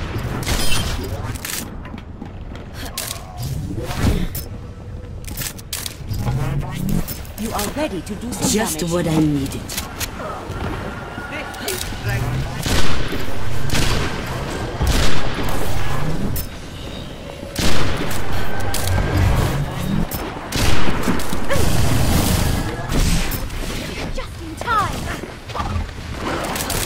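Sniper rifle shots crack with heavy booms.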